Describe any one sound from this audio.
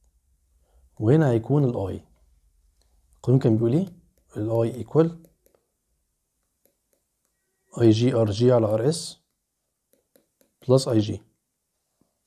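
A man speaks calmly and closely into a microphone, in short phrases with pauses.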